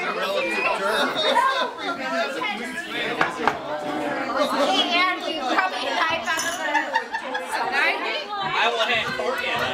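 A crowd of men and women chatter and talk over each other close by.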